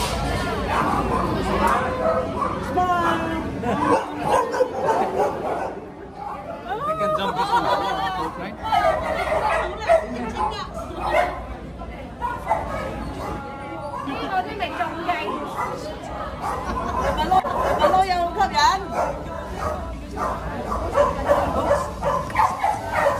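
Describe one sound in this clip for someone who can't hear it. A crowd of women chatters excitedly close by.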